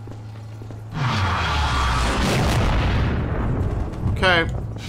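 A loud explosion rumbles and roars.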